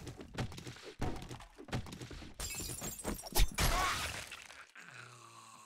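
A zombie snarls and screeches up close.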